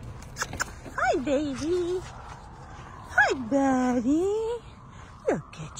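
A dog whimpers and howls in high, wavering cries.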